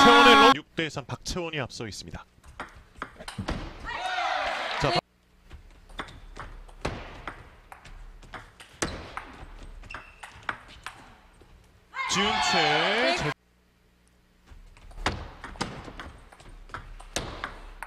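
A ping-pong ball clicks back and forth off paddles and a table.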